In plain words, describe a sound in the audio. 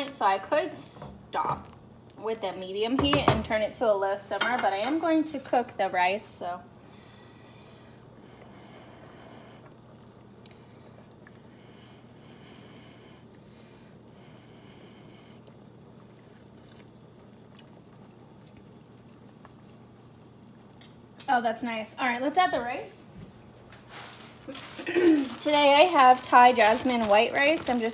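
Soup simmers and bubbles softly in a pot.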